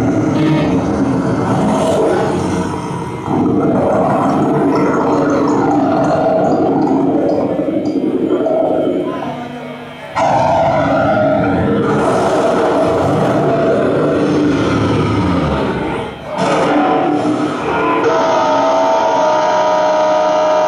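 A live rock band plays loudly with electric guitars, bass and drums.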